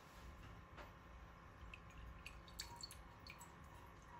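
Melted butter pours from a pan into a glass bowl.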